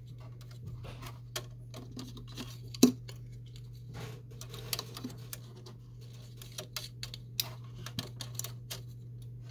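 A flat ribbon cable rustles as fingers handle it.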